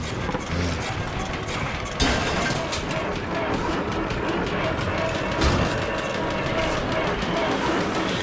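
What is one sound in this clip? A truck engine roars and revs.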